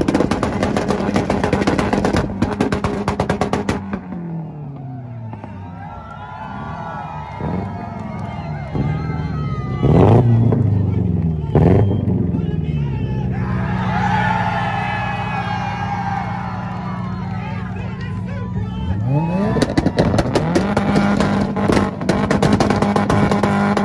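A car engine revs loudly and rises and falls in pitch.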